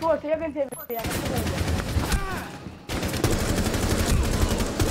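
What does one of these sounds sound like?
A rifle fires rapid bursts of gunshots up close.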